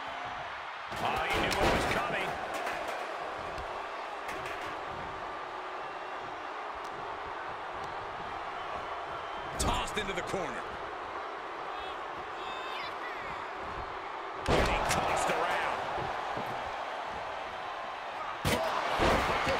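Heavy bodies slam down onto a wrestling ring with loud thuds.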